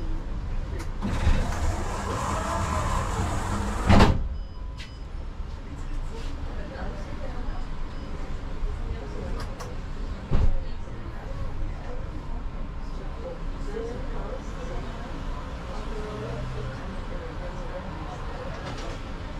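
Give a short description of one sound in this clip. Cars drive past along the street.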